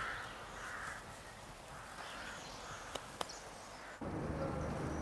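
A horse walks on grass with soft hoof thuds.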